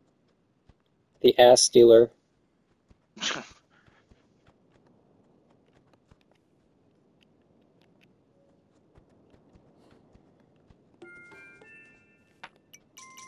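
A horse's hooves thud softly at a steady trot.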